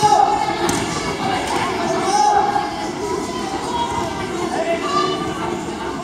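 Spectators call out in an echoing hall.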